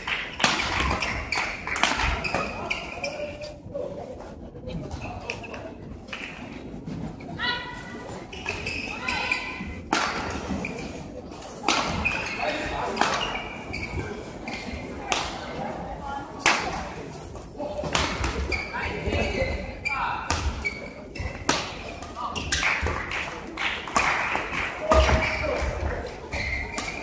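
Shuttlecocks are struck with sharp racket pops.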